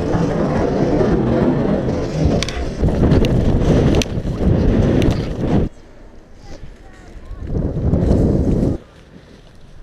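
A sled scrapes and hisses fast over packed snow.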